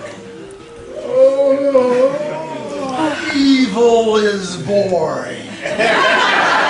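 An elderly man sings loudly, with his voice wavering and sliding in pitch.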